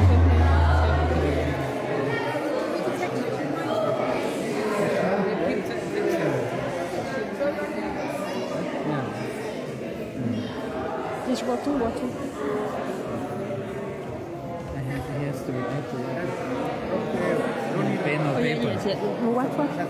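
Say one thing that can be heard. A crowd of men and women talk and sing together close by.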